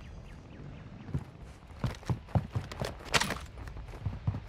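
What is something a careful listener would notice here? A rifle clicks and rattles as it is handled.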